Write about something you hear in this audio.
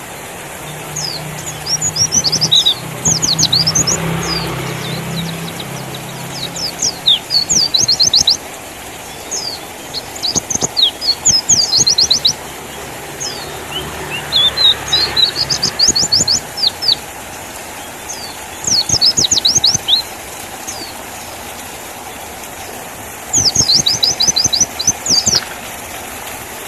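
A small bird sings loud bursts of quick, high chirps and trills, with short pauses between them.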